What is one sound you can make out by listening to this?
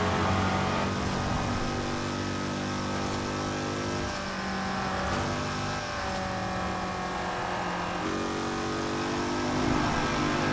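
A racing car engine drones steadily at high speed in the open air.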